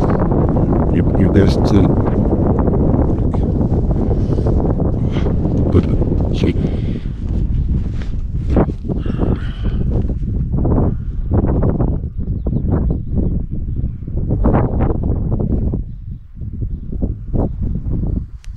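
Strong wind buffets a microphone outdoors.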